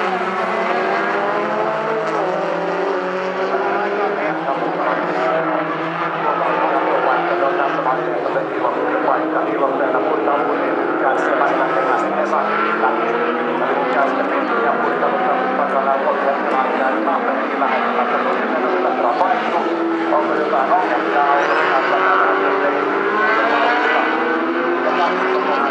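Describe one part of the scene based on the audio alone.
Several car engines roar and rev loudly.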